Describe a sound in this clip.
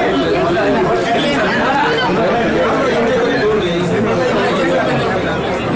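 Many men talk over each other close by, in a busy, noisy crowd.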